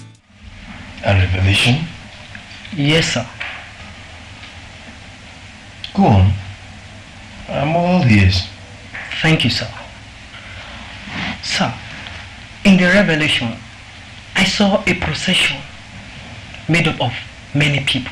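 A man speaks calmly in short phrases, with pauses between them.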